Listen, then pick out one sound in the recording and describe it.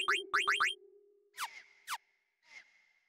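Short electronic menu blips chime in quick succession.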